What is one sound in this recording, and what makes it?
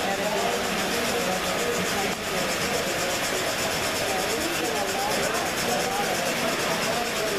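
Model trains rumble and clatter along their tracks.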